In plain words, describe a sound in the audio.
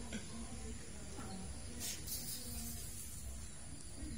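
A baby monkey nibbles and chews on a snack close by.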